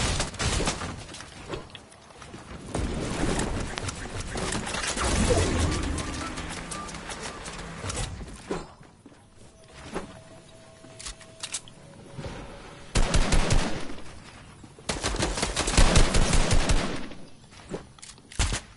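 Wooden walls clatter and thud as they are built quickly.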